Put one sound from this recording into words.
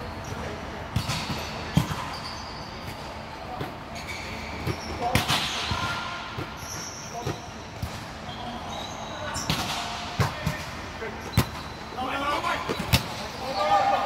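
A volleyball thumps off players' arms and hands in a large echoing hall.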